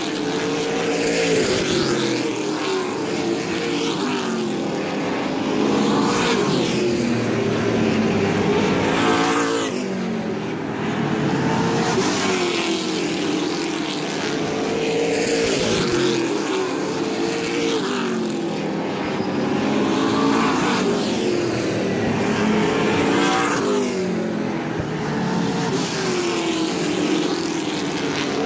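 Race car engines roar loudly as cars speed around a track.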